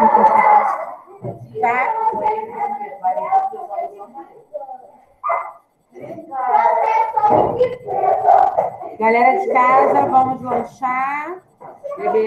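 A woman talks calmly, heard close up through an online call.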